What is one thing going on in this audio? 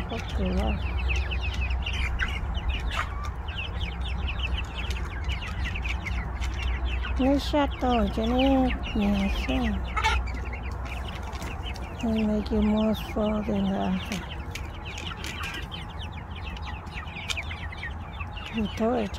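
Young chickens peck at corn on the ground.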